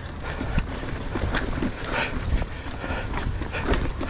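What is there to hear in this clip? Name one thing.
A bicycle rattles and clatters over rocks.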